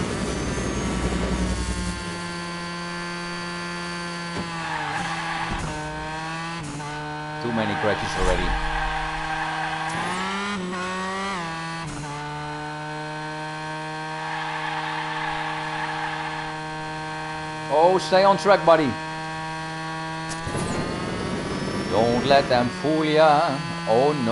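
A racing car engine whines steadily, rising and falling in pitch as the car speeds up and slows.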